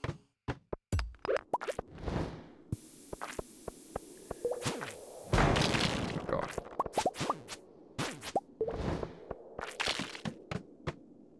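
Short game sound effects of a sword swinging and striking ring out again and again.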